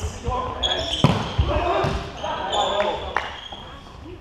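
A volleyball is spiked with a sharp smack in a large echoing hall.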